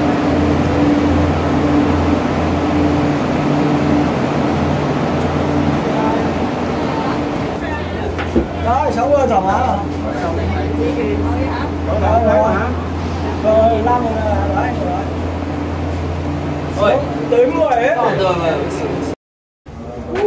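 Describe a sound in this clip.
Machinery hums steadily and low.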